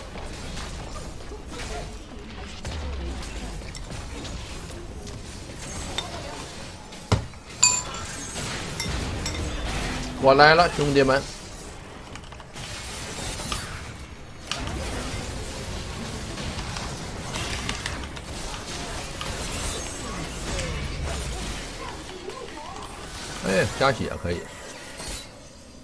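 Game combat effects clash and burst.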